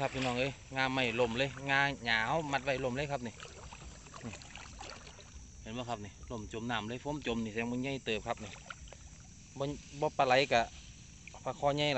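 Boots squelch through shallow muddy water.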